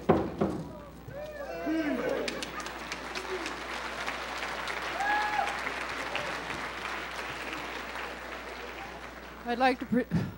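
A crowd of people murmurs and chatters in the background.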